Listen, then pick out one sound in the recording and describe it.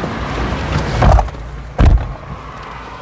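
Car doors slam shut with heavy thuds.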